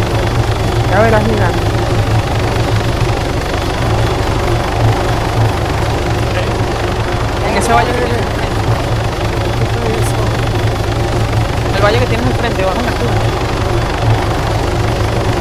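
A helicopter engine and rotor drone steadily from inside the cabin.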